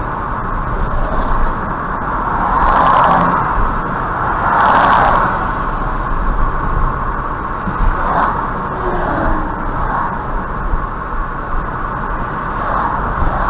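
Tyres hum steadily on a road as a car drives along at speed.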